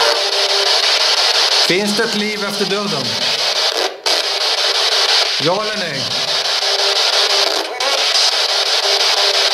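A handheld electronic device hisses with steady static.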